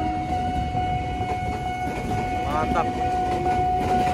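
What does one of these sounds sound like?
A train rumbles past nearby.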